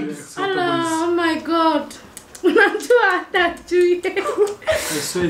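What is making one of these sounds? A young man sings loudly and playfully up close.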